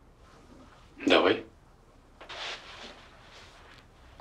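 A woman speaks briefly nearby.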